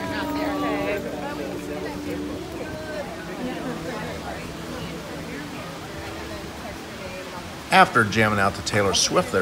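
A crowd of adults chatters in the open air.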